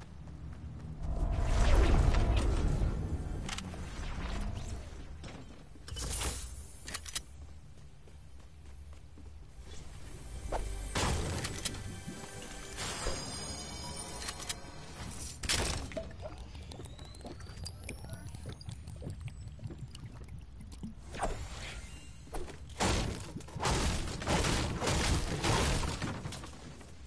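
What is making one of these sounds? A pickaxe strikes and smashes wood.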